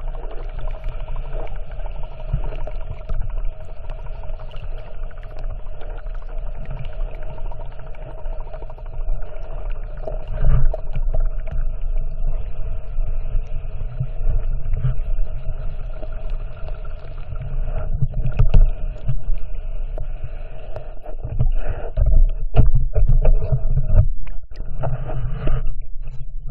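Water swishes and rumbles with a dull, muffled sound, as if heard underwater.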